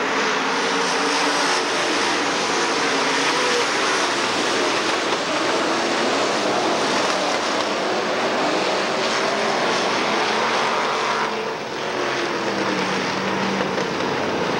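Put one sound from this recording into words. Engines rev up and down as cars race past.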